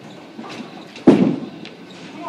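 A bowling ball thuds heavily onto a wooden lane.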